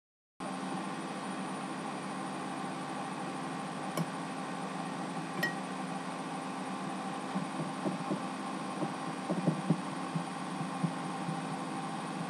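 A fork scrapes and taps on a plate.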